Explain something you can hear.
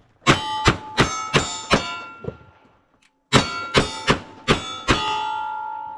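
A pistol fires quick series of loud shots outdoors.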